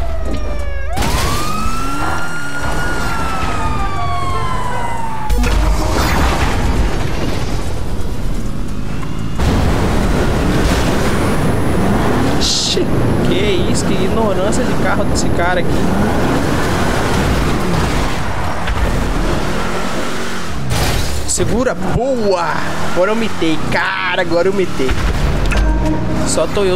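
A car engine revs and roars.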